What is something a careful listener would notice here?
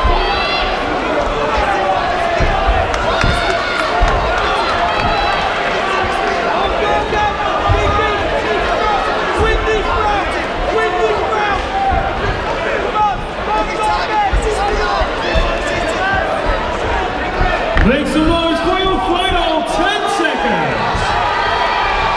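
Boxing gloves thud against each other.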